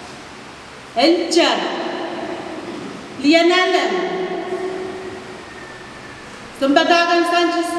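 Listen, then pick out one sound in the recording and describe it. A woman sings long held notes through a microphone in an echoing hall.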